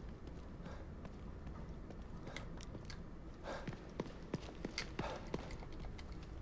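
Footsteps thud on a hard floor indoors.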